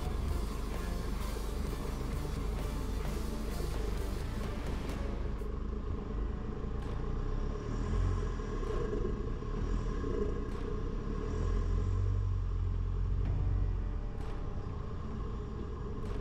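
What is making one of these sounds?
Tyres crunch over a dirt track with leaves.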